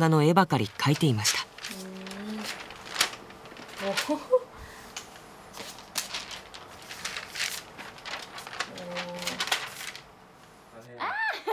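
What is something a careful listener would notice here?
Paper pages rustle and turn.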